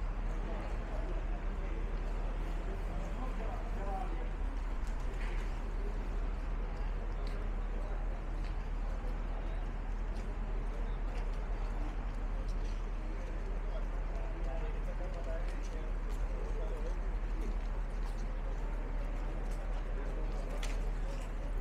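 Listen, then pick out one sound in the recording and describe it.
A crowd murmurs indistinctly nearby.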